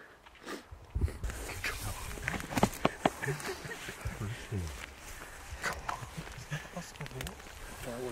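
A middle-aged man talks excitedly up close, outdoors.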